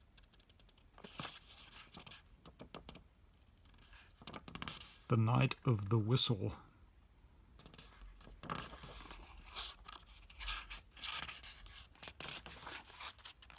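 Paper pages rustle softly under fingers.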